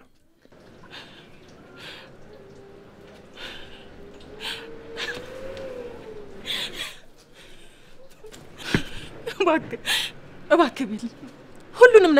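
A woman speaks with distress, close by.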